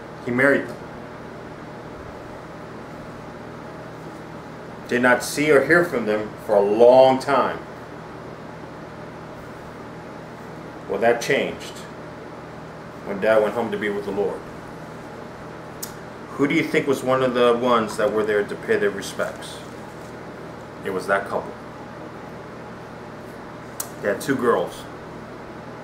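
A middle-aged man speaks calmly and close by, in short bursts with pauses.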